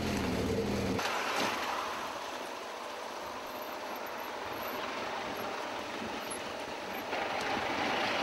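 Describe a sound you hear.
Cars drive past on a rough road.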